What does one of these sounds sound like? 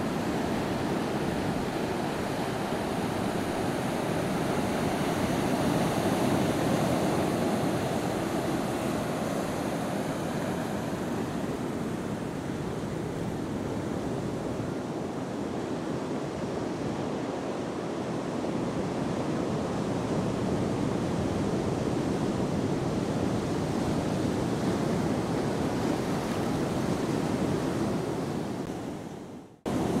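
Ocean waves break on a rocky shore in the distance, with a constant roar.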